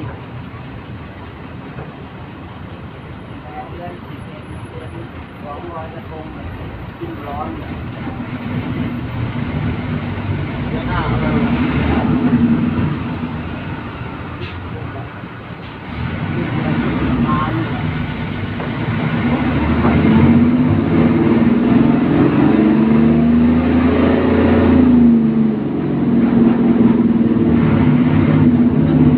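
Loose fittings rattle as the bus moves.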